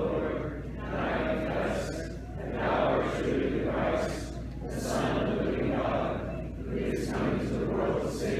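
A man chants a prayer in a slow, sung voice, echoing in a large hall.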